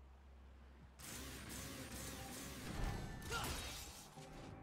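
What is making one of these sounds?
A sword slashes and clangs in a game fight.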